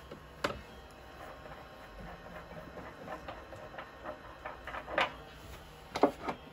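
A chisel scrapes against wood spinning on a lathe in short bursts.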